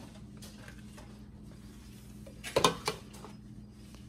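Metal tongs clink against a plate.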